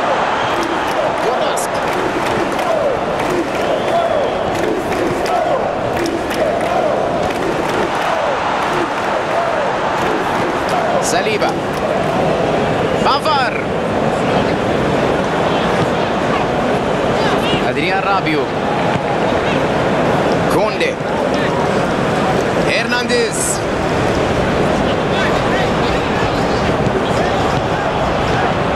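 A large crowd cheers and chants steadily in a stadium.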